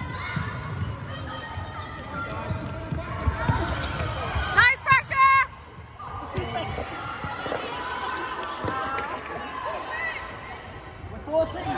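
Young girls call out and chatter in a large echoing hall.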